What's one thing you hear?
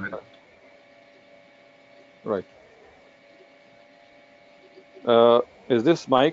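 A middle-aged man speaks calmly through a computer microphone, with pauses.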